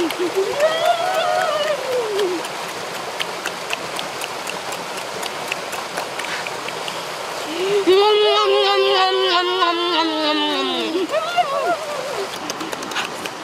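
Water trickles in a nearby stream.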